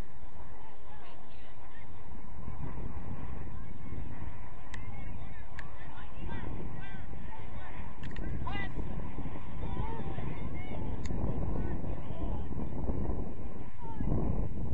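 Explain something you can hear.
Girls shout to each other across an open field in the distance.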